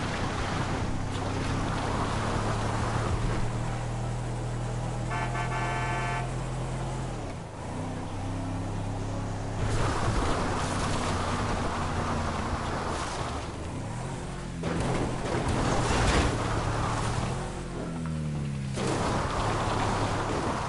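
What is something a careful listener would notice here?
A van engine hums steadily as it drives.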